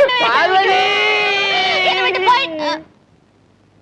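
A woman wails loudly.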